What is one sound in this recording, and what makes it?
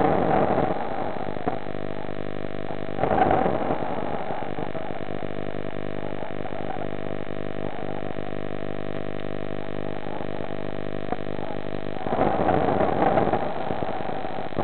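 Air bubbles gurgle and rush close by underwater.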